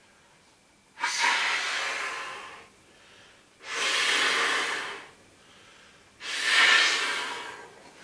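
A man blows air hard into an inflatable toy in long puffs.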